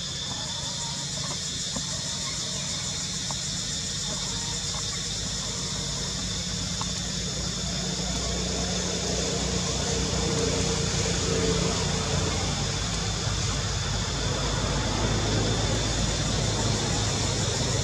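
A monkey rustles leaves and branches as it climbs.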